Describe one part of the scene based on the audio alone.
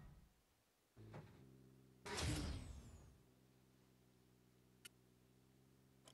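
Soft steady music plays.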